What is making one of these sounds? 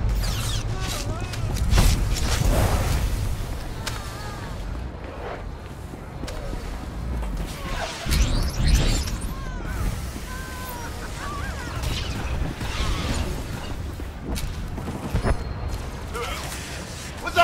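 Energy weapons zap and crackle in a fight.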